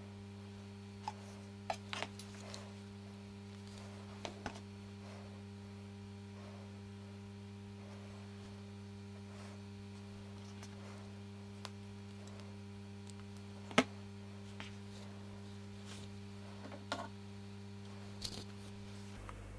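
Fingers handle a thin wire with small clicks.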